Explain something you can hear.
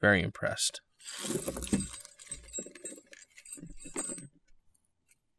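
A plastic bag crinkles and rustles.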